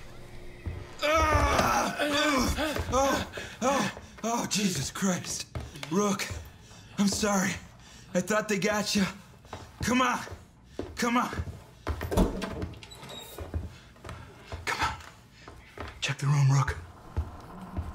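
A man speaks urgently and breathlessly, close by.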